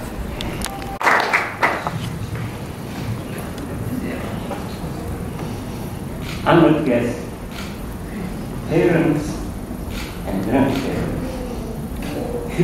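An elderly man speaks slowly through a microphone.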